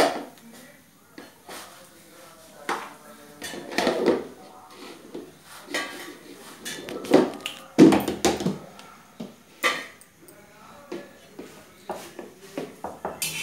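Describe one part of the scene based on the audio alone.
A rolling pin rolls and knocks on a stone board.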